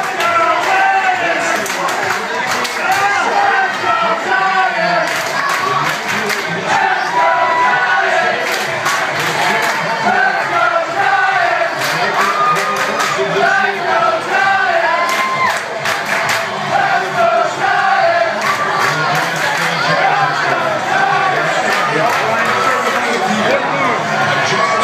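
Hands clap sharply in the crowd.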